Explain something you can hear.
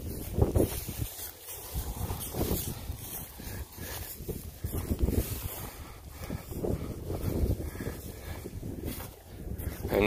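Cattle hooves shuffle and crunch through dry straw.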